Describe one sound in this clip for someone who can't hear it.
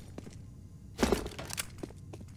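A pistol is drawn with a metallic click.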